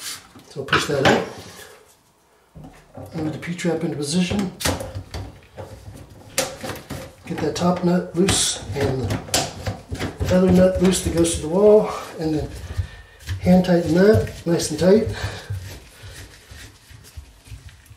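Plastic drain pipe parts scrape and click as they are twisted together.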